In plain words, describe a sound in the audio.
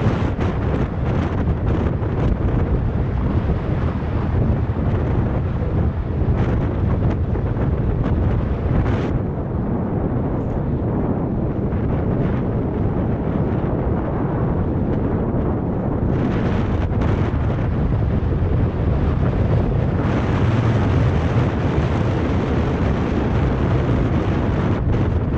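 Strong wind roars and buffets against a microphone.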